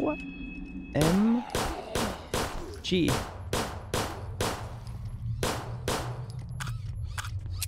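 Gunshots fire in rapid bursts, echoing in a tunnel.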